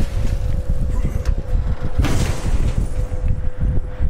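A heavy chest lid creaks open with a shimmering burst.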